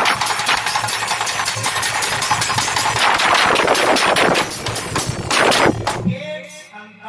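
Cymbals clash in a quick, steady rhythm.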